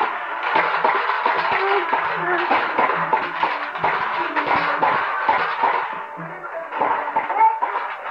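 A toddler babbles close by.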